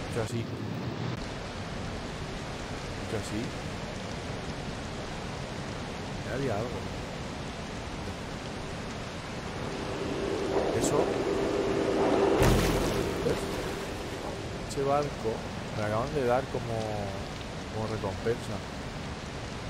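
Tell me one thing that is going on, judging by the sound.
A man talks into a close microphone.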